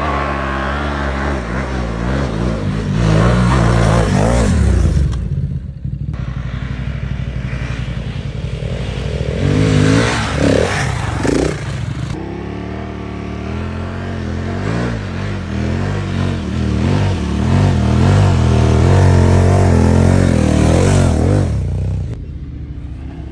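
Motorcycle engines rev loudly nearby, rising and falling as the bikes climb a dirt hill.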